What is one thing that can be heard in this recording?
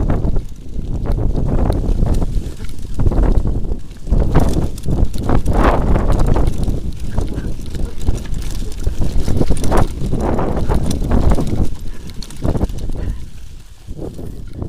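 Wind rushes loudly past as a bicycle rides fast.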